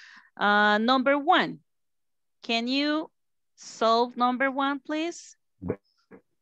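A woman speaks slowly and clearly over an online call.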